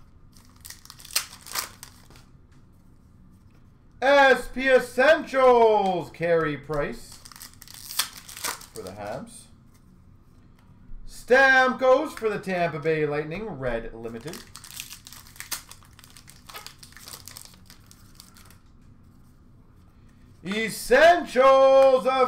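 Trading cards rustle and tap as they are handled.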